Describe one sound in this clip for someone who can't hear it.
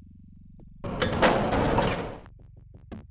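A heavy metal door slides open with a rumbling scrape.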